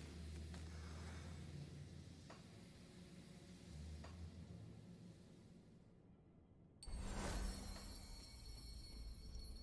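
Soft clicks sound as game menus open and close.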